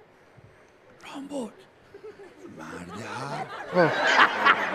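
A middle-aged man talks playfully near a microphone.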